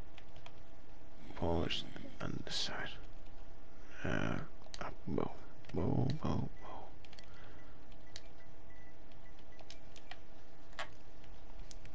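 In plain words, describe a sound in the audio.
Soft menu clicks tick now and then.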